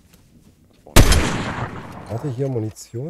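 A rifle fires a single loud shot that rings out.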